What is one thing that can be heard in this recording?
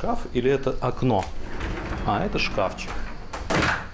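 A wardrobe door slides open.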